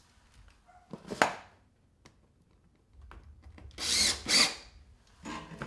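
A metal panel clanks and rattles as it is pushed into place.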